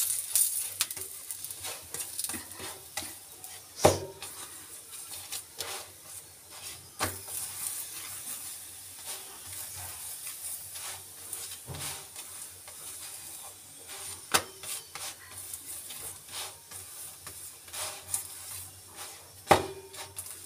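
Oil sizzles softly on a hot pan.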